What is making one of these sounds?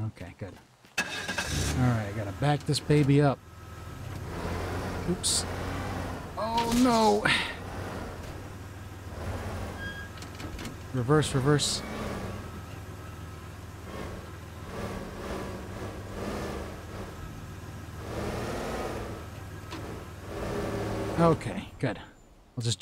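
A van engine hums steadily as it drives.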